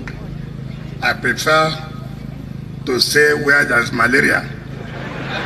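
A man speaks loudly into a microphone over a loudspeaker, in a large echoing space.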